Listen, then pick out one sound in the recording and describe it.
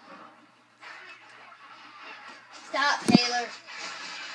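A television plays in the room.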